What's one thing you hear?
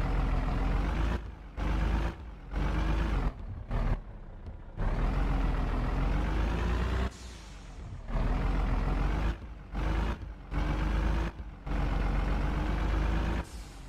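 A truck engine drones and revs up in bursts, cutting out now and then.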